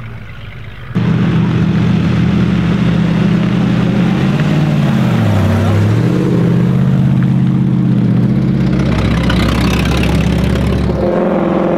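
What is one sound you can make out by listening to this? A vintage racing car's engine roars as it drives past.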